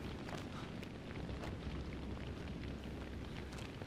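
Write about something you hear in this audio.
Footsteps scuff on gravel.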